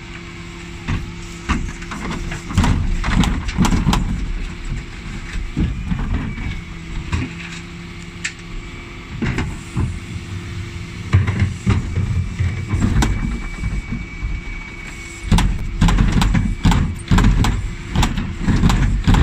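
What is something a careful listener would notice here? A garbage truck engine hums steadily nearby.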